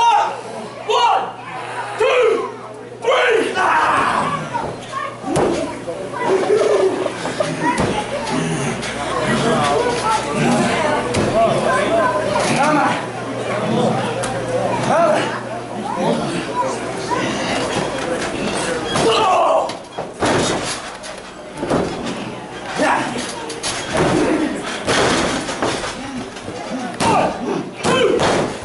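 A crowd in a small room cheers and shouts.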